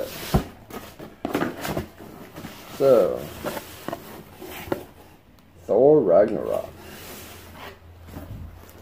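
Cardboard flaps rustle and knock as a box is opened.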